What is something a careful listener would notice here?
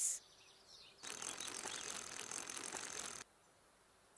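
A small bicycle rolls and rattles along.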